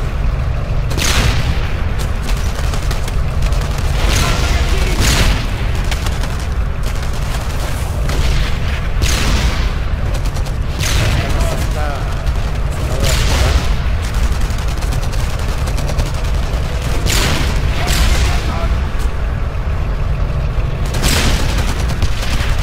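Gunshots crack at intervals, each followed by a ringing echo.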